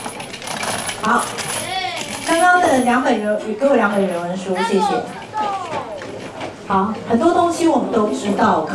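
A woman speaks with animation to a group.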